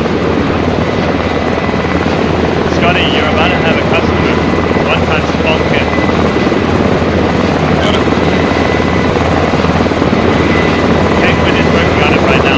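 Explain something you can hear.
A helicopter's rotor thuds and roars close by.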